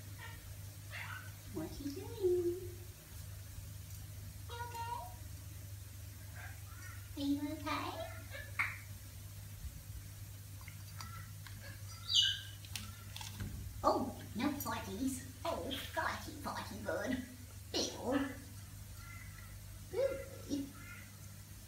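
An African grey parrot whistles and squawks close by.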